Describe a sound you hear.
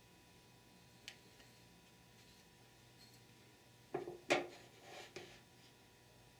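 Metal transmission clutch plates clink as hands set them on a wooden bench.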